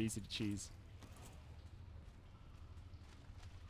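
A torch crackles softly.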